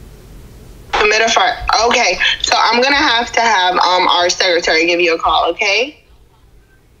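A young woman talks with animation over an online call.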